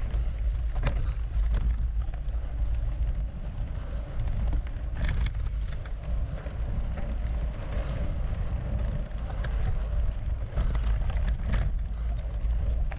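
Bicycle tyres crunch and rattle over a bumpy dirt trail.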